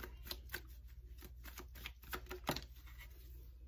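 Playing cards flick and tap softly as they are shuffled and laid down.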